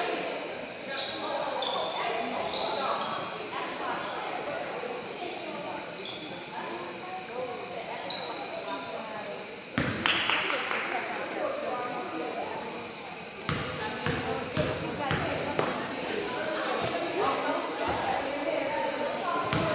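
A crowd murmurs and chatters in an echoing gym.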